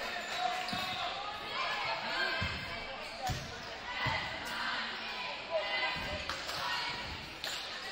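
A basketball bounces with dull thuds on the court.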